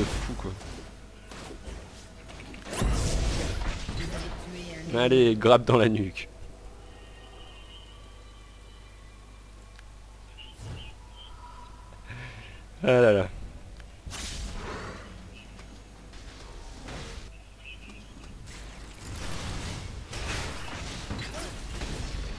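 Magic blasts and clashing sounds burst out in a fight.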